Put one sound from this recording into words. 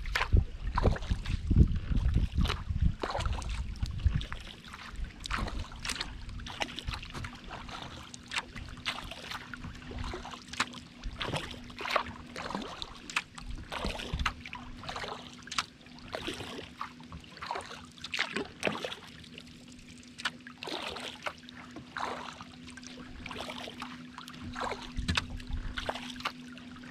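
Small waves lap and splash against the hull of a kayak.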